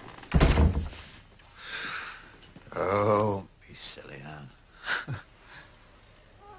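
A woman sobs and cries out close by.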